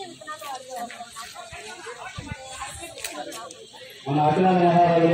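People murmur and talk quietly in a crowd outdoors.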